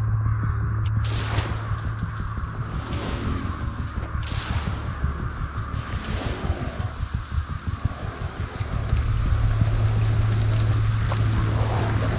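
A magic charm crackles and whooshes as it is cast.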